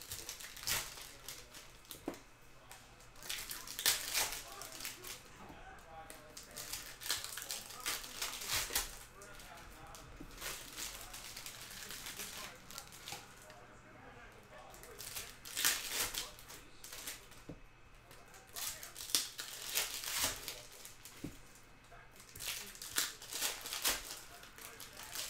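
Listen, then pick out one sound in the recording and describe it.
Foil card wrappers crinkle and rustle close by.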